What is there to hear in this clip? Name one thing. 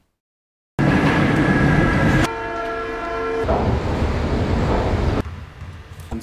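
A metro train rumbles and whines along the rails.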